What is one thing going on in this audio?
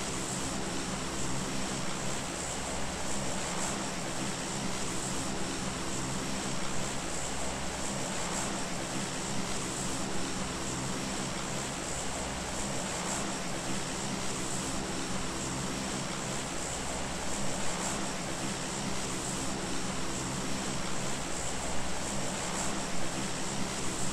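A plane's engines drone steadily.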